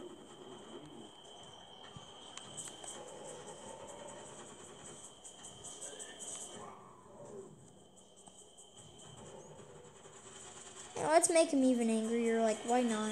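Game sound effects play from a television.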